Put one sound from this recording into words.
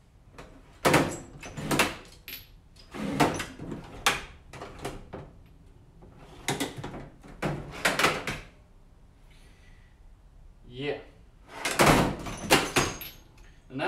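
Metal tools clink and rattle in a drawer.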